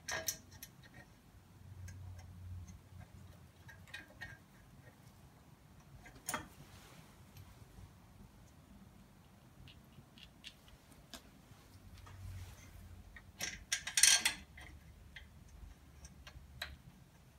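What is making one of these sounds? Metal parts click and clank as an engine is worked on by hand.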